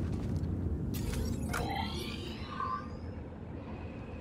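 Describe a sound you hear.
Soft chimes and whooshes sound as a map opens.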